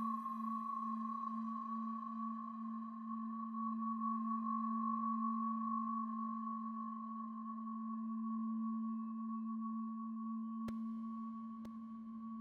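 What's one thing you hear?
A synthesizer drones with a steady low tone and a higher hum.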